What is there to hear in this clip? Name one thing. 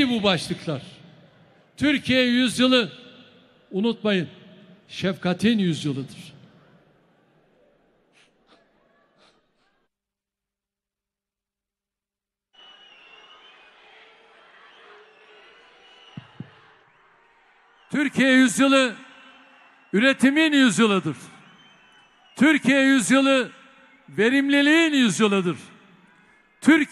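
An elderly man speaks forcefully into a microphone, heard over loudspeakers in a large hall.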